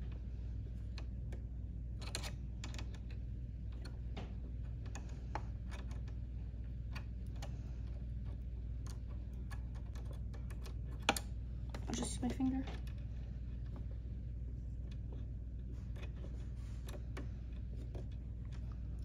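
Small metal parts click and tap as they are handled.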